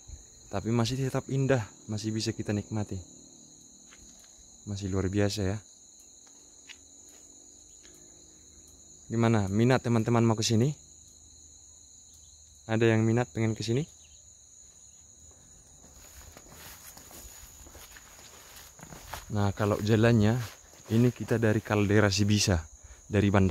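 A man speaks calmly close to the microphone, in short phrases with pauses.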